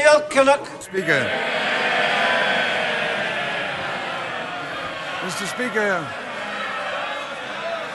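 A large crowd of men murmurs and jeers in an echoing chamber.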